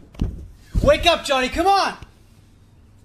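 A woman shouts urgently up close.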